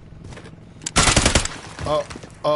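A rapid burst of gunfire rings out.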